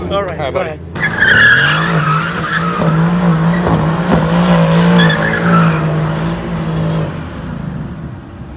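A sports car engine roars and revs steadily.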